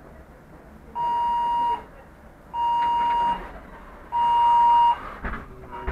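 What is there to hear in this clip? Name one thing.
A door warning signal beeps three times.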